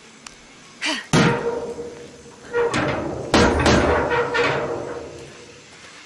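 A metal gate rattles and creaks open.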